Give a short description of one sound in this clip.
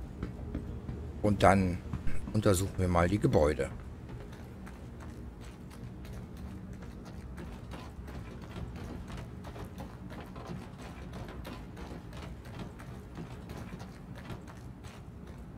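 Footsteps crunch steadily over loose rubble.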